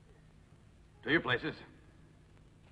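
A man speaks firmly and briefly nearby.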